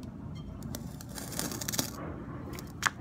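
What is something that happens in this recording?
A gloved hand rubs and wipes a glass bowl.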